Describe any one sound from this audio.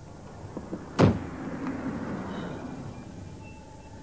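A car crashes with a loud bang and a rumbling crunch.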